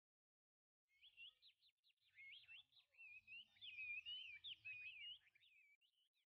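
A small bird sings a quick, warbling song.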